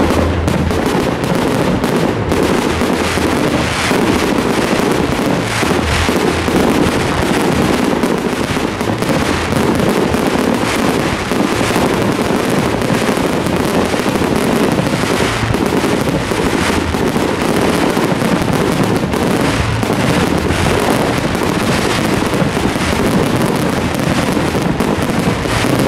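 Fireworks burst and bang in rapid succession.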